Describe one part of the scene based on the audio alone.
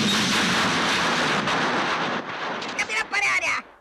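Waves crash and splash loudly.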